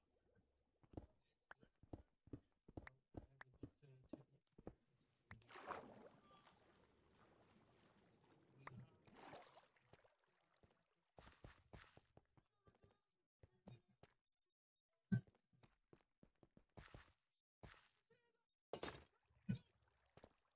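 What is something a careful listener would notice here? A pickaxe breaks stone blocks with quick, crunchy knocks.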